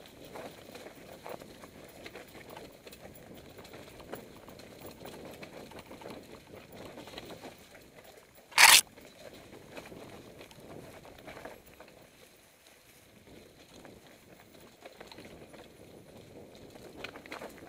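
A bicycle rattles over bumps on the trail.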